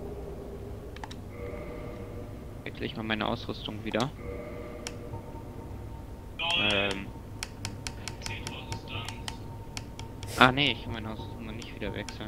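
Game menu sounds click as selections change.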